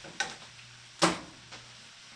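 A spatula clanks down against the rim of a pan.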